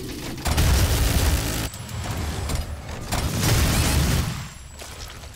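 A shotgun fires with loud booming blasts.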